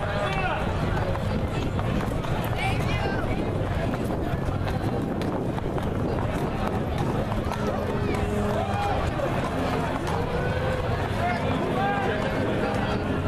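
A crowd chatters and calls out along a street outdoors.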